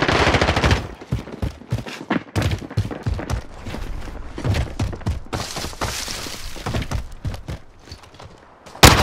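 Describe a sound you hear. Footsteps crunch quickly over gravel and rubble.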